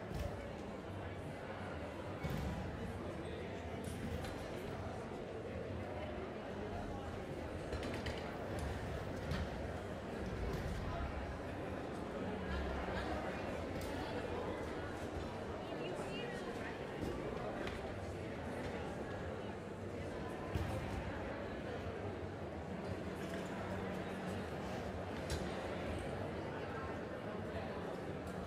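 Many people murmur and chat in a large echoing hall.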